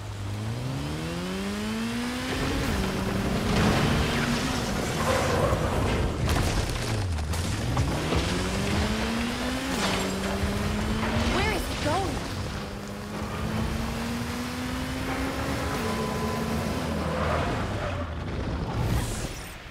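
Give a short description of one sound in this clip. Tyres hiss over wet pavement.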